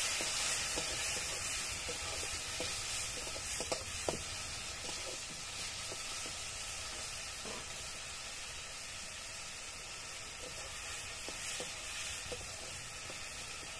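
A metal spatula scrapes and clicks against a wok.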